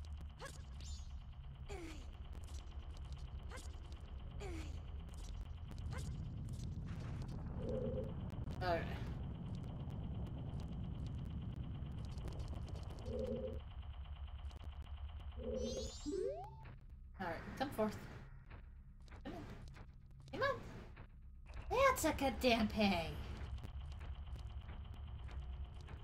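Video game sound effects chime and clang.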